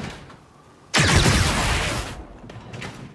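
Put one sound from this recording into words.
An electric blast crackles and roars.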